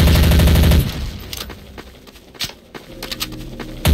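A submachine gun clicks as it is reloaded.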